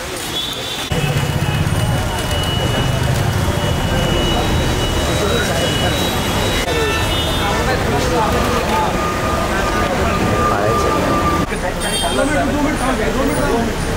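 A crowd of men talks outdoors.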